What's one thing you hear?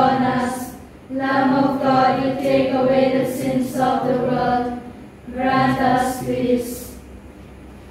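A man chants in a sung voice into a microphone, in a reverberant room.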